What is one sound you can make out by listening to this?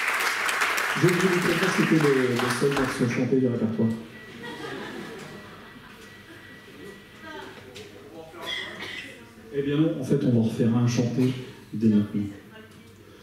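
A man speaks calmly into a microphone through loudspeakers in a large hall.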